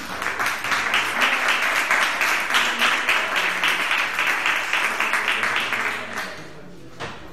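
An audience applauds, then the clapping dies away.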